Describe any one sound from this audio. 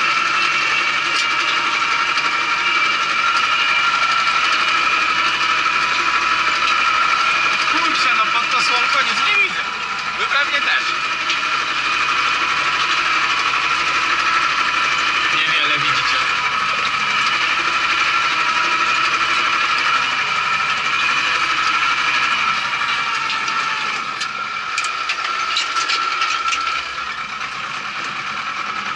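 A tractor engine drones steadily from inside the cab.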